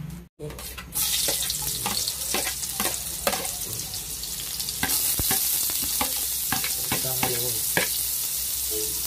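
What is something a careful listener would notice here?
Food sizzles loudly as it drops into hot oil.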